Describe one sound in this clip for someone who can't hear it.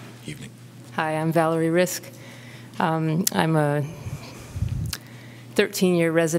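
A woman speaks calmly into a microphone, heard through a room's loudspeakers.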